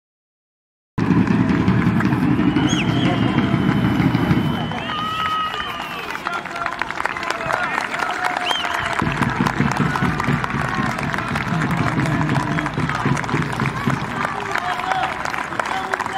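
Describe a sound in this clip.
A crowd of fans chants and cheers outdoors.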